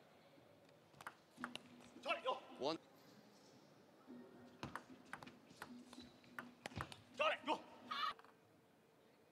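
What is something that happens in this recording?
A table tennis ball clicks sharply back and forth off paddles and the table in a quick rally.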